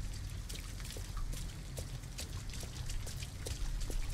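Footsteps tap slowly on pavement.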